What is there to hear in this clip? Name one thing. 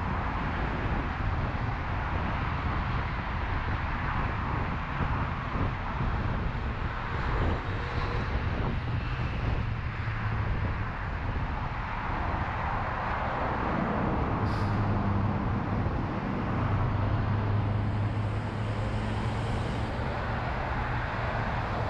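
Steady road noise and wind rush past a moving car on a busy motorway.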